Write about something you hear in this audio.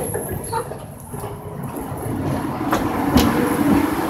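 A tram rolls in close and rattles past.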